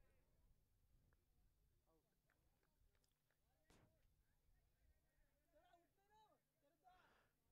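Young men shout and cheer outdoors in the distance.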